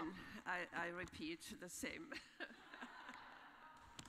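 A woman laughs nearby.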